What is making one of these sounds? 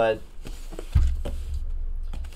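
A cardboard box thumps as it is lifted and set down.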